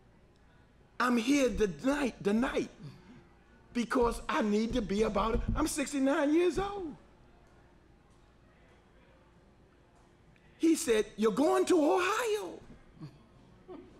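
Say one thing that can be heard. A middle-aged man speaks with animation into a close microphone, pausing between phrases.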